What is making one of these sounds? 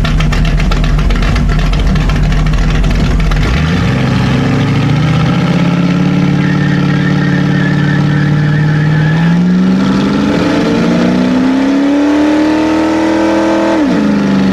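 A car engine idles with a deep rumble, then revs up and down loudly.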